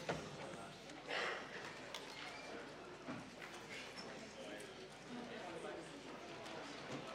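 Footsteps walk across a hard floor in a large echoing hall.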